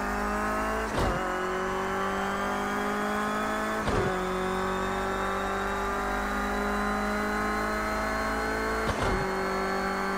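A racing car's gearbox clunks with each upshift.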